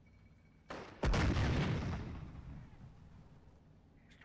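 A loud explosion booms and rumbles away.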